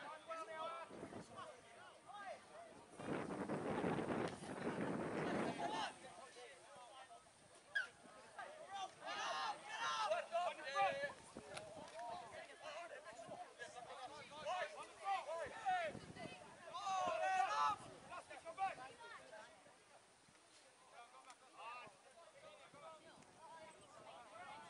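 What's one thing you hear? Teenage boys shout and call to each other outdoors across an open field.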